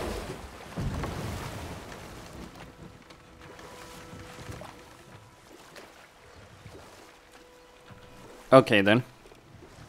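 Oars splash softly in water.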